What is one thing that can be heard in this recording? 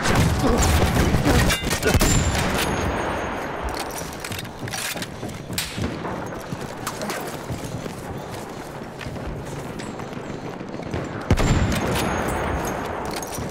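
Explosions boom with a heavy rumble.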